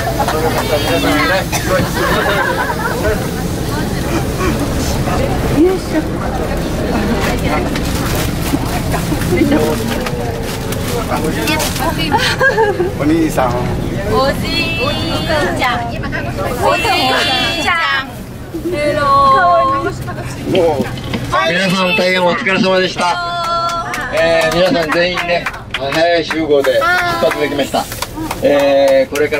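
Several adult women and men chat and laugh close by.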